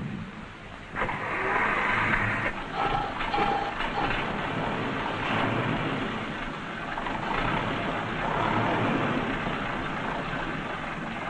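A car engine runs and drives off.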